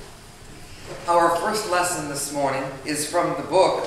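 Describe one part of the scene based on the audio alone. A woman reads aloud calmly in an echoing room.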